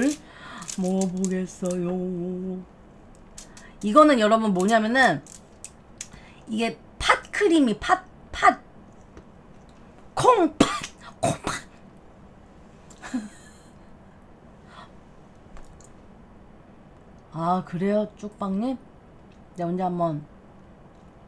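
A young woman talks and exclaims with animation close to a microphone.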